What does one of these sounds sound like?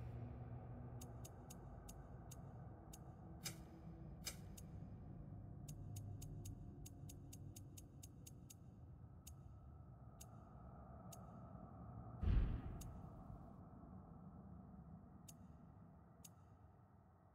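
Short, soft menu clicks tick in quick runs.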